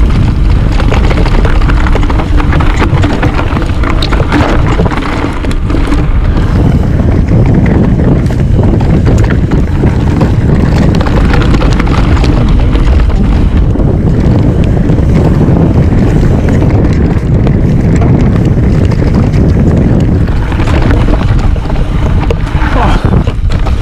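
Mountain bike tyres rumble and crunch over a dirt trail.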